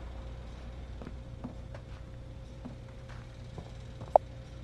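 Footsteps creak slowly across a wooden floor.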